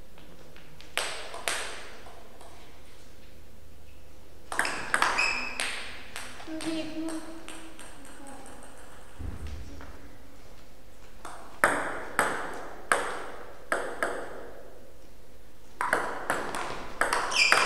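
A table tennis ball knocks back and forth in fast rallies.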